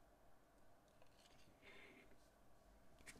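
A plastic piece scrapes softly as it slides out.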